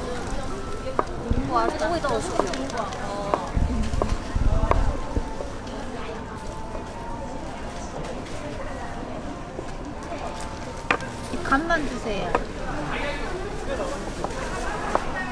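A knife chops on a wooden board with sharp knocks.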